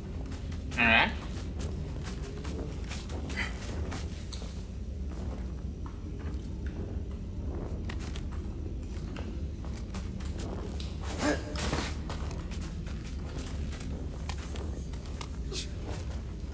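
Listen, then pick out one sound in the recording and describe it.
Leaves rustle as someone climbs through thick vines.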